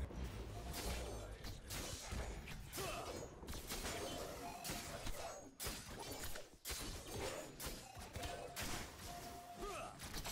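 Metal blades clash and strike in rapid bursts.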